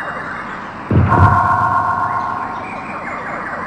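A bright chime rings.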